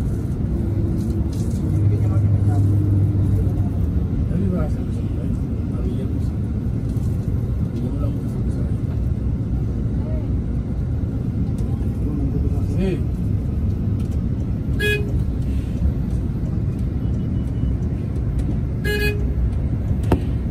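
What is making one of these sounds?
Passing cars whoosh by on a busy road.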